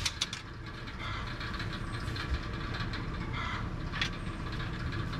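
A tool clicks sharply against wire mesh.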